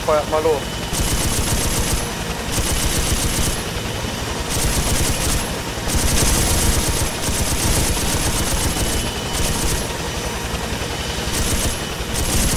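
A door-mounted machine gun fires in loud rapid bursts.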